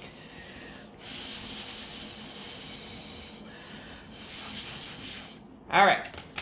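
A girl blows air through a straw in a steady hiss.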